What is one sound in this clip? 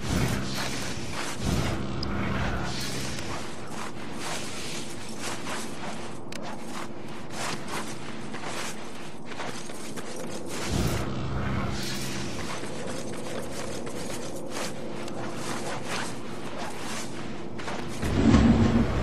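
Quick knocks and scrapes sound as a climber grabs and clambers up a building.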